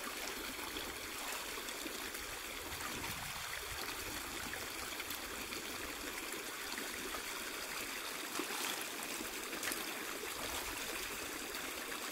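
Water splashes as a person wades through a shallow stream.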